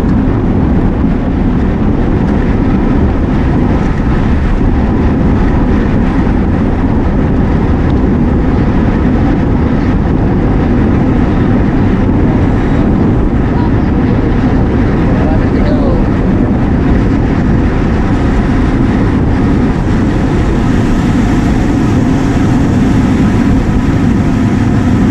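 Wind rushes loudly over the microphone while riding.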